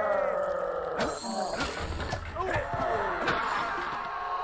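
A magic spell bursts with a crackling boom.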